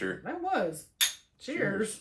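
Glasses clink together.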